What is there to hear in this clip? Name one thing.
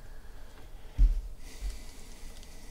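A hand knocks against a table with a dull thud.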